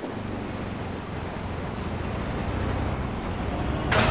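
A large truck rushes past close by.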